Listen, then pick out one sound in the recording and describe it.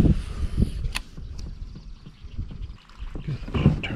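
A fishing reel clicks and whirs as its handle is cranked.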